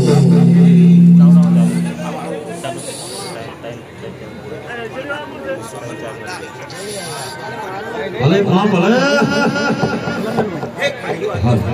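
A man speaks loudly through a microphone.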